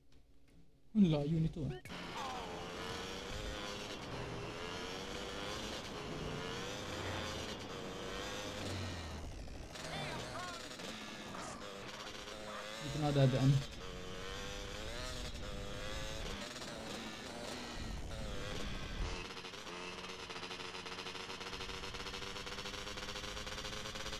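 A motorbike engine revs and hums steadily.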